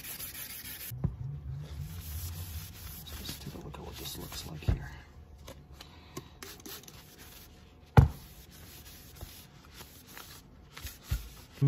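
A paper towel rubs and wipes across a metal pipe.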